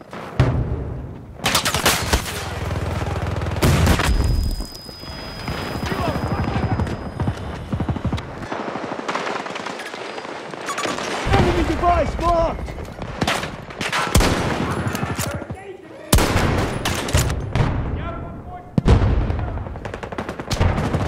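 Rifle shots crack loudly, one at a time, with echoes trailing after them.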